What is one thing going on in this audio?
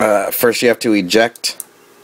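Hands click a plastic drive part into place.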